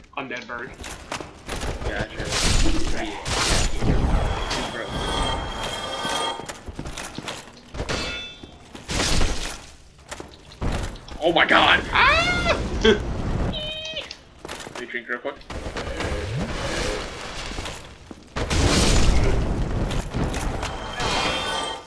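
Swords clash and slash against flesh with sharp hits.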